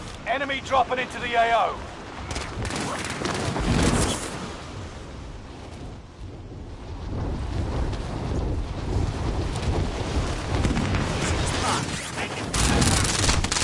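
Wind rushes loudly during a fall through the air.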